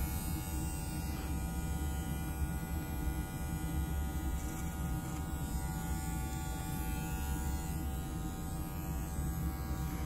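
Scissors snip through hair with short crisp clicks.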